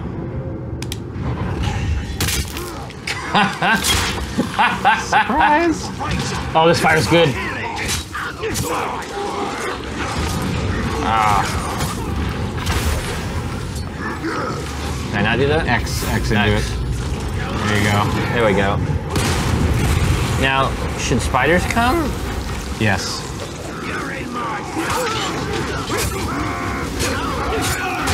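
Men talk with animation over microphones.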